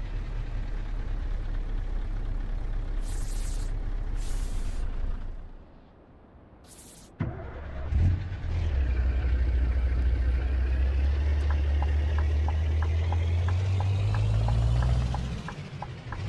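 A truck engine hums low and steady, dropping away briefly before rumbling louder again.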